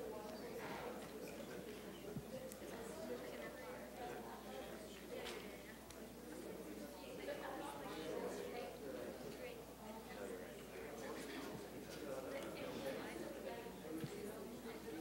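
Many young people chatter at once in a large, echoing hall.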